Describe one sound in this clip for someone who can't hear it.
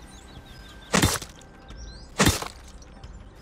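A metal tool strikes with sharp knocks.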